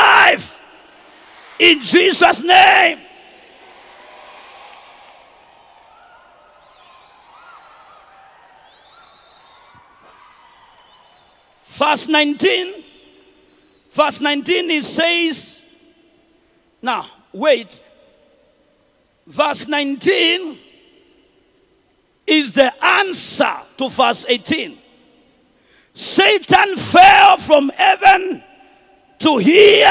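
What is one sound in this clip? A young man speaks with animation through a microphone over loudspeakers in a large echoing hall.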